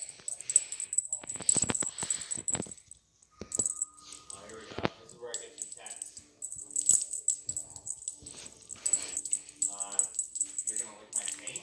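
A cat scrambles and skitters across a hard floor.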